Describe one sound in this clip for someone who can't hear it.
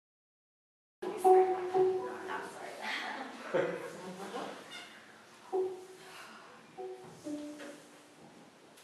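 Women talk and laugh close by in an echoing room.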